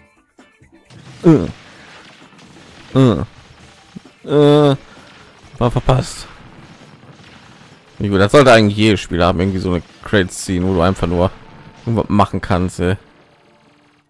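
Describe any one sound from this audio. Electronic game sound effects ring out in short bursts of bright tones.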